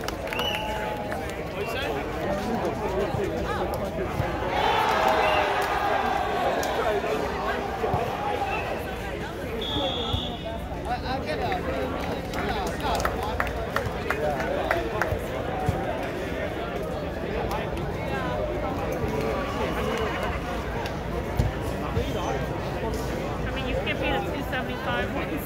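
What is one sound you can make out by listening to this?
A crowd of young men and women chatters outdoors close by.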